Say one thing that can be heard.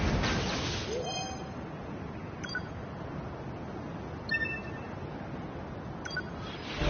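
Short electronic menu chimes sound.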